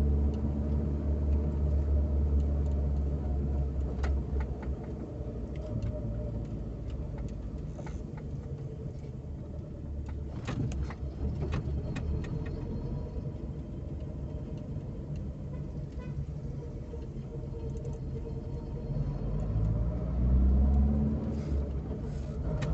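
A car engine hums steadily from inside the car as it drives slowly.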